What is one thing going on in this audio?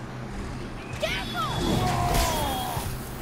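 Heavy blows and crashes ring out in a fight.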